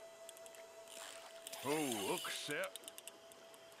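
Water splashes as a fish strikes a line.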